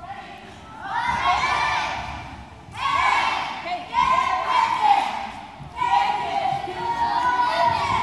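A group of young girls shout a cheer together in a large echoing gym.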